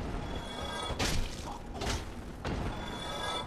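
A sword swings with a sharp whoosh.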